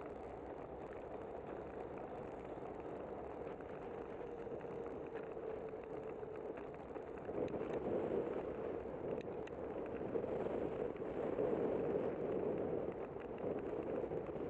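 Wind rushes past steadily, growing louder.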